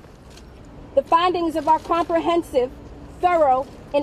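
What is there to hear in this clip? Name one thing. A woman speaks firmly into microphones outdoors.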